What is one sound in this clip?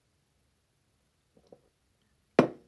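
A young woman sips from a mug.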